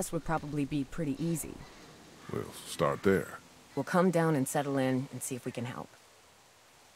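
A woman speaks calmly and close.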